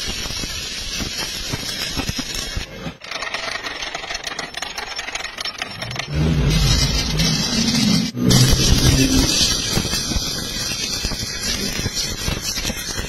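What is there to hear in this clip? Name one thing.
An electric welding arc crackles and sizzles.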